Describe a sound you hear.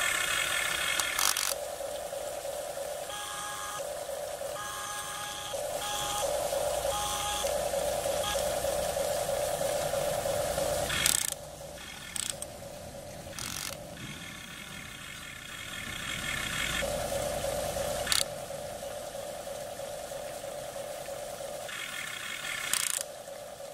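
Water trickles and splashes down rocks nearby.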